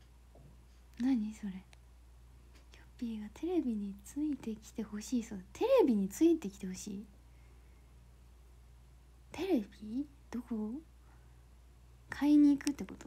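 A young woman speaks softly and playfully, close to a phone's microphone.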